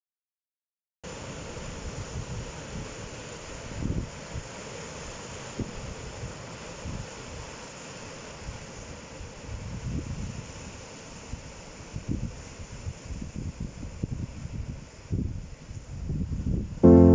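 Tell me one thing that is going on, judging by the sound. Waves break and wash over rocks below.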